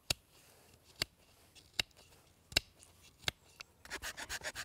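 A knife snaps sharply as it cuts chips from wood.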